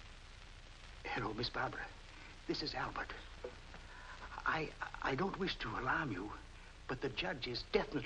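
An elderly man talks on a telephone.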